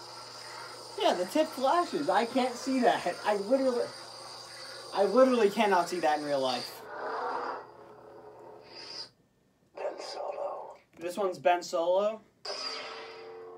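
A teenage boy talks with animation, close by.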